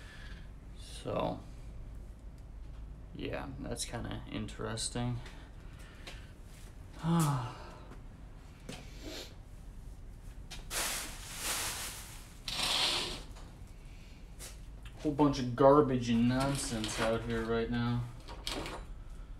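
A man speaks calmly and close by, in bursts with pauses.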